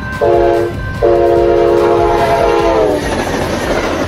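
A train horn blasts loudly twice, the second blast long and dropping in pitch as the train passes.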